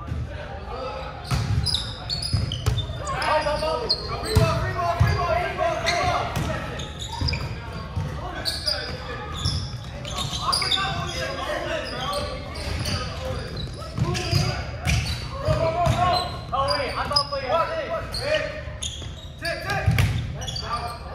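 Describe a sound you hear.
Young men call out and shout to each other during play.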